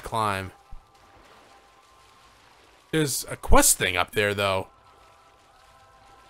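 Water splashes softly as a swimmer paddles along.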